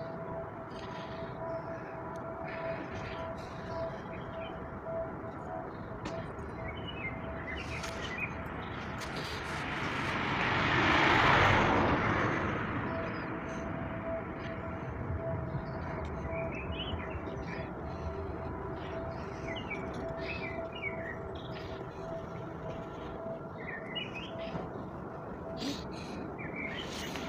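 Metal clanks now and then on a building site.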